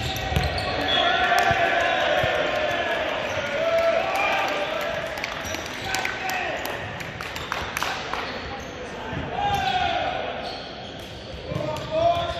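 Young men shout and call out to each other in a large echoing gym.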